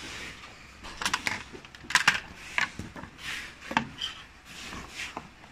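A cardboard box knocks and taps as it is handled.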